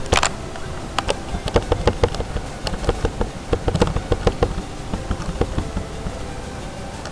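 A small ball clicks and rattles as it wobbles.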